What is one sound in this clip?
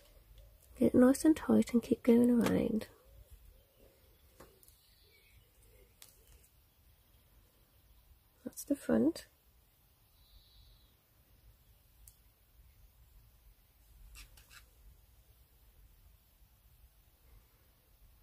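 Thin wire scrapes and clicks softly as fingers bend it.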